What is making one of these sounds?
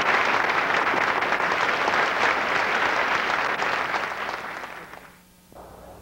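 A large crowd cheers and applauds loudly in a big hall.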